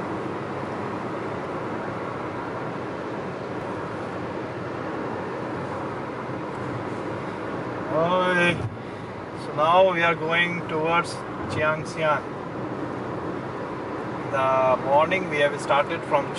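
A car engine hums and tyres roll steadily on a paved road, heard from inside the car.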